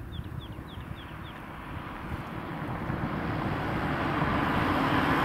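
A car approaches along a road, growing louder.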